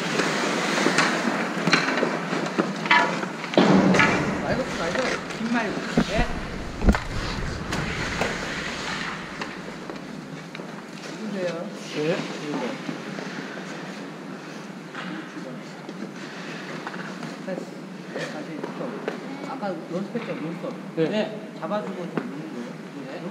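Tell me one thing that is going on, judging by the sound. A man speaks loudly to a group in an echoing hall.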